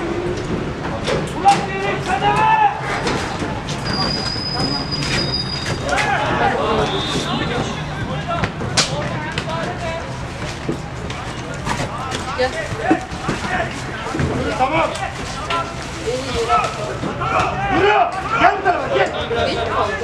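Men shout to each other outdoors across an open pitch.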